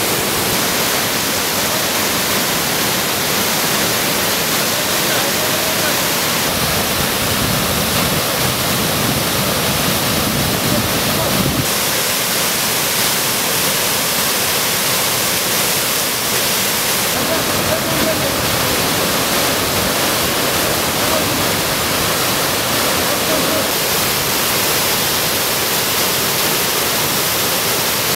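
A waterfall roars and rushes steadily nearby.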